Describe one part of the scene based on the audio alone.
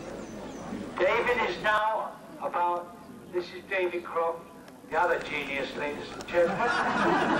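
A man speaks through a loudspeaker.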